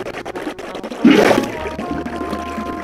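Water sloshes briefly as a bucket is filled.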